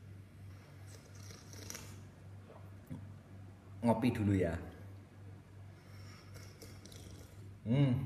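A young man gulps a drink.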